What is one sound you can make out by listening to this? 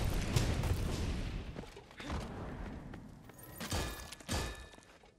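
A magic spell flares with a bright shimmering burst.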